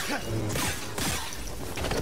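Blaster shots crackle and hit nearby.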